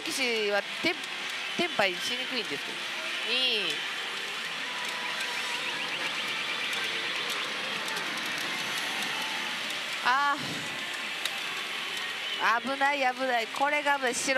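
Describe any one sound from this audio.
A pachinko machine plays bright electronic music and chimes.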